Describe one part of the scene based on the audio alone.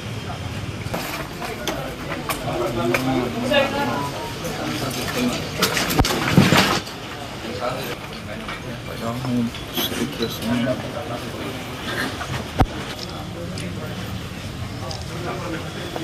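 A crowd of men murmur and talk quietly nearby.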